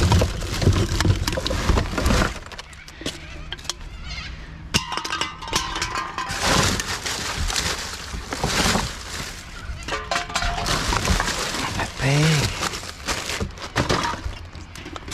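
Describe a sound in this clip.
Plastic bags and wrappers rustle and crinkle.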